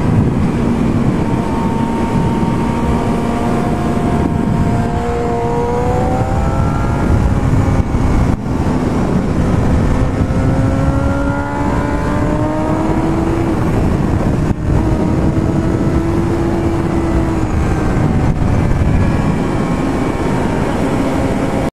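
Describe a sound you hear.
Wind rushes hard past the rider.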